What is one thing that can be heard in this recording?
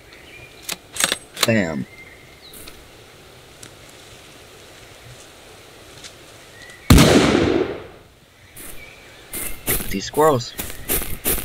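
A young man speaks briefly and calmly, close to a microphone.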